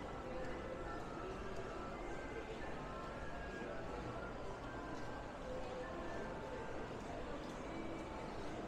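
Footsteps tap on a hard floor.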